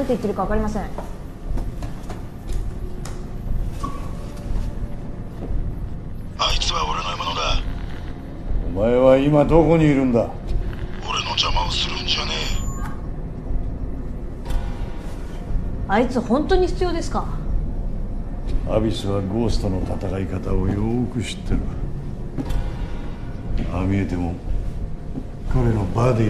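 A young man speaks quietly nearby.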